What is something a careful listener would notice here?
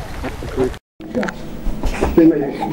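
Young children squeal and laugh playfully.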